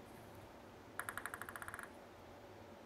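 A table tennis ball bounces quickly on a paddle.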